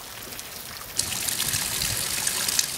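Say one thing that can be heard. Rainwater pours off a roof edge and splashes below.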